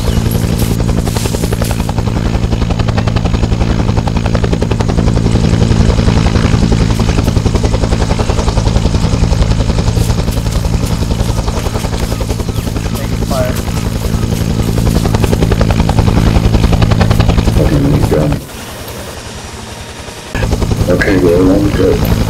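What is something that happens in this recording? A helicopter's rotor thumps loudly and steadily nearby.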